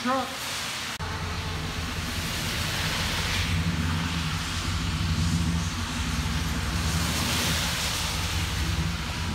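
A pickup truck's engine rumbles louder as the truck pulls away.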